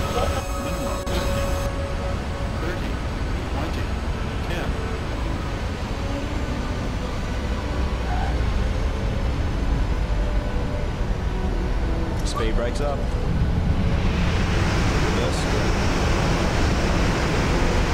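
A jet engine roars steadily, growing louder toward the end.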